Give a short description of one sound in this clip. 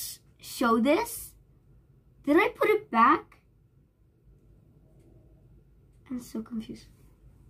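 A young girl talks brightly and close by.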